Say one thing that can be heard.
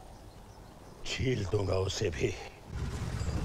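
An elderly man speaks loudly.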